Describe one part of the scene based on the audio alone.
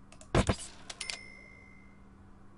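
A bright chime rings as the window is bought.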